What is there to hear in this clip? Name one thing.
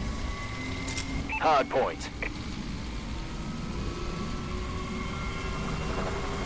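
Short electronic beeps count down.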